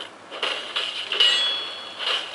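A sword strikes armour with a metallic clang.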